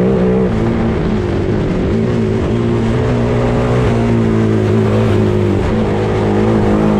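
An off-road buggy engine roars loudly at high revs.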